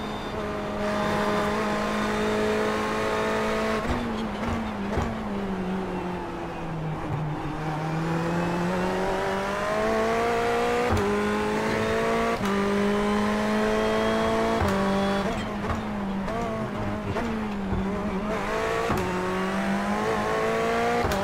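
A racing car engine drones and rises and falls in pitch as the car speeds up and slows down.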